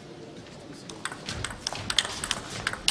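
A table tennis ball clicks rapidly back and forth off paddles and the table.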